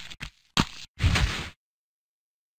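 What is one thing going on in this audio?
A heavy body thuds onto a stone floor.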